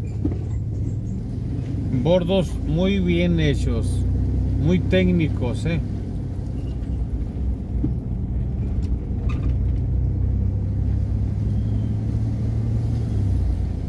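A car engine hums low and steady while driving.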